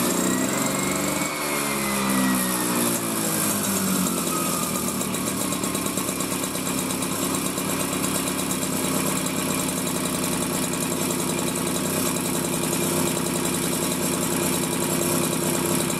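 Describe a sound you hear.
A small moped engine runs with a loud, rattling buzz.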